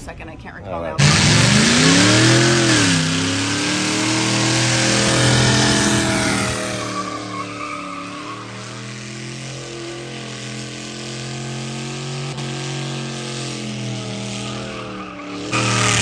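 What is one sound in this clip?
Tyres screech and squeal during a burnout.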